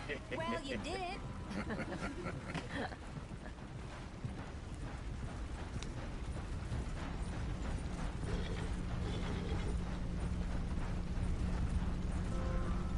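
Horse hooves clop steadily on dirt.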